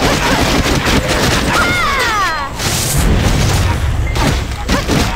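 Magic blasts whoosh and crackle.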